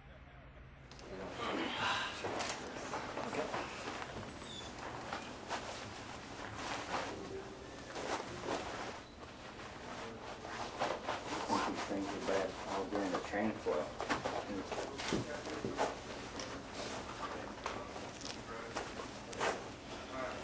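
A middle-aged man talks casually nearby.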